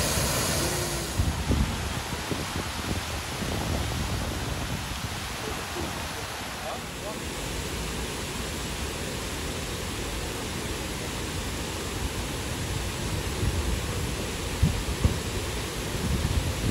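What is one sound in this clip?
Fountains splash and hiss steadily outdoors.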